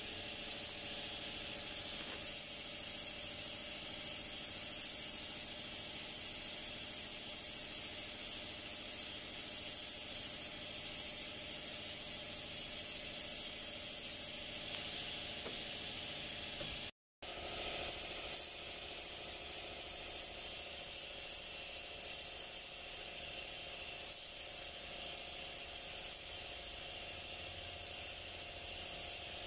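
A spray gun hisses steadily as it sprays paint.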